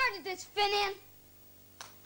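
A young boy speaks into a microphone.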